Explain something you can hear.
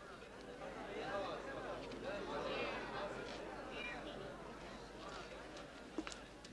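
A crowd of men murmurs quietly in the background.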